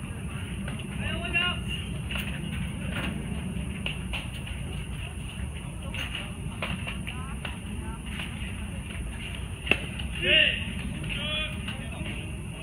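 Young men shout and call out from afar across an open field.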